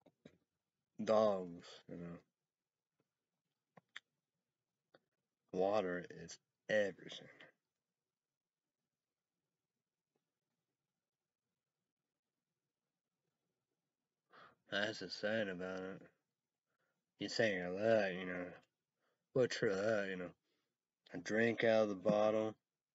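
A young man speaks calmly and close up, with pauses.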